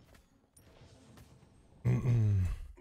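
A bright game chime rings.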